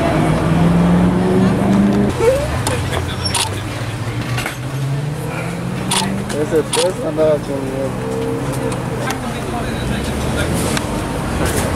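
A car engine idles nearby with a low hum.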